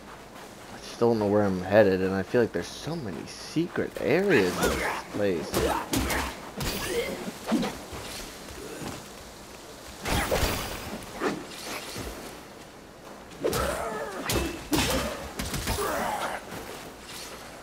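Swords clash and strike with sharp ringing blows.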